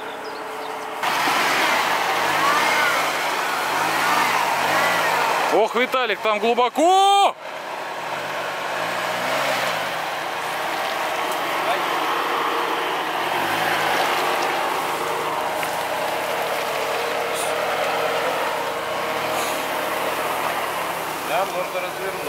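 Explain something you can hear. A car engine revs and labours as it drives through mud.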